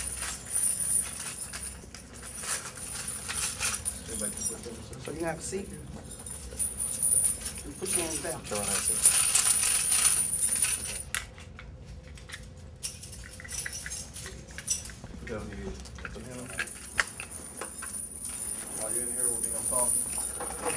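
Metal handcuffs click and rattle.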